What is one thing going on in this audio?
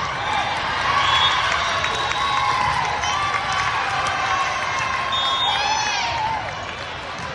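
Young women shout and cheer together on the court.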